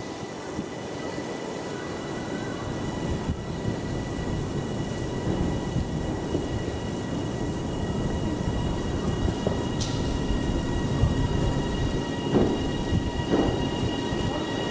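A train approaches with a low rumble that grows louder, echoing under a large roof.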